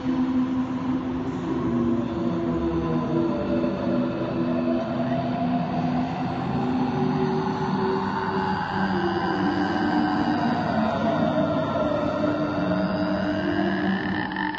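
A young woman sings close into a microphone.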